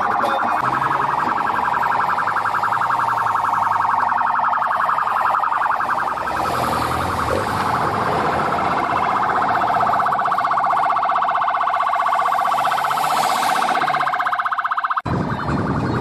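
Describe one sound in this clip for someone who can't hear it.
A convoy of cars and a motorcycle drives slowly past with engines running.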